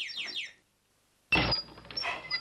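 A door opens with a click.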